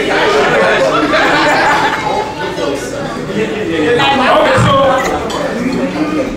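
A crowd of people chatters nearby in a room.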